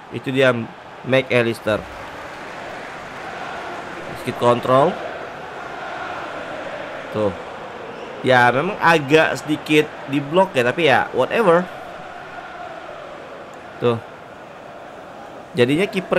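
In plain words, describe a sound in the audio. A young man talks with animation close to a headset microphone.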